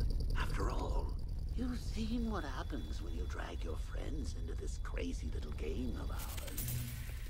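A man speaks in a slow, menacing voice.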